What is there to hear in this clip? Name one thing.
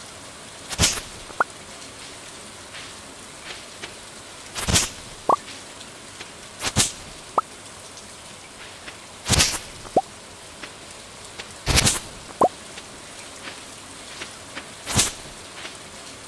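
Sharp swishing slashes cut through weeds every few seconds.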